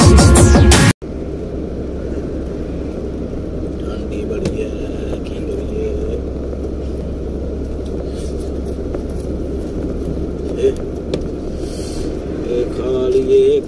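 A truck engine rumbles steadily from inside the cab.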